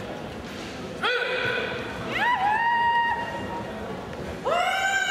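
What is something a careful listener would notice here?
A man shouts loud, drawn-out battle cries in a large echoing hall.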